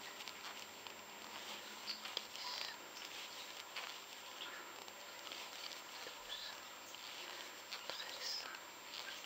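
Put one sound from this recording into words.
Yarn rustles softly as fingers work a crochet hook.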